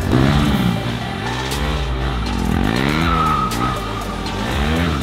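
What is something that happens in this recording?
A motorcycle engine revs up and down, rising and falling in pitch.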